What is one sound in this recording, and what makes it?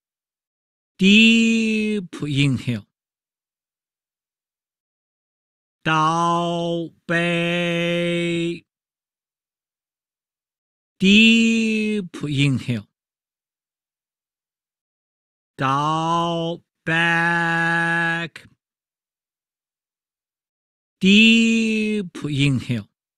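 A man chants long, drawn-out sung phrases through an online call, with silent pauses between them.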